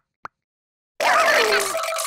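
A cartoon creature squeals in a high, excited voice.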